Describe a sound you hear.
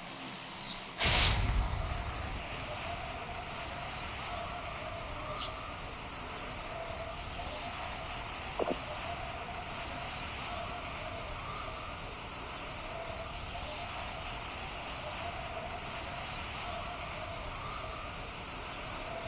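Wind rushes loudly during a skydiving fall.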